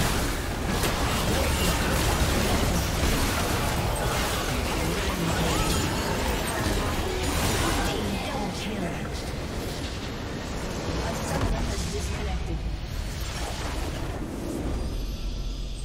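Game battle effects clash and burst rapidly.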